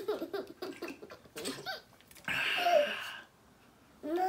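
A small child laughs.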